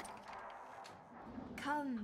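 A fire crackles in a stove.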